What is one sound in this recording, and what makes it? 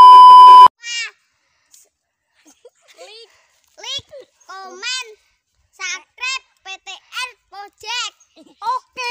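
A young boy speaks cheerfully and close by.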